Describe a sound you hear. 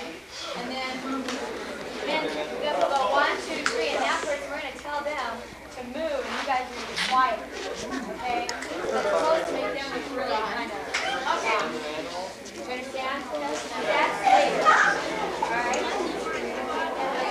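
A group of young men and women talk and laugh nearby.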